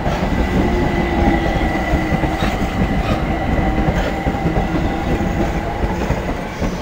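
A second train rolls by at a distance.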